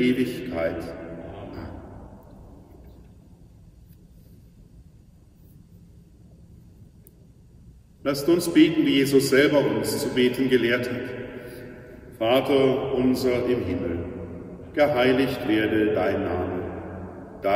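A middle-aged man chants in a sung voice that echoes through a large hall.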